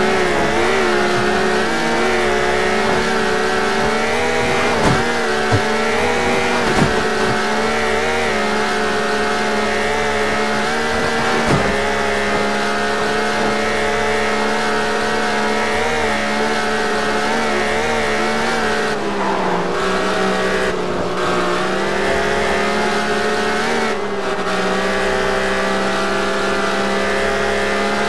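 A car engine hums steadily at high speed, shifting pitch slightly.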